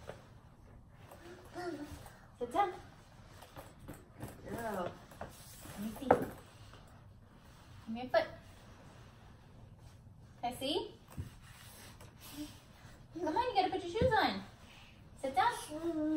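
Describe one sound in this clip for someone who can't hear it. Small shoes thump on carpeted stairs.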